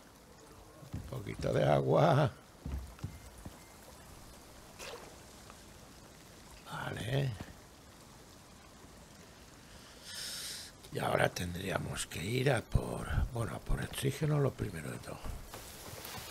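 A man talks casually and close to a microphone.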